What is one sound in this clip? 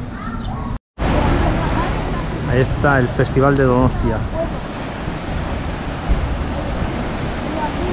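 Waves wash and splash against rocks.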